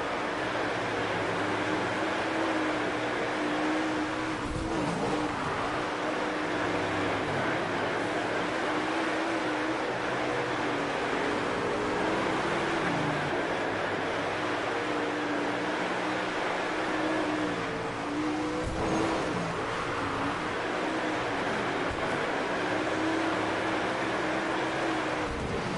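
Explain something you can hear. A race car engine roars steadily at high revs, its pitch rising and falling.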